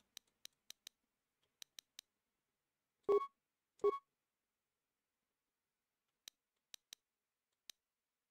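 Short, soft menu clicks tick in quick bursts.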